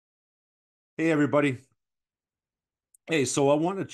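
A middle-aged man speaks calmly and closely into a microphone, in short bursts.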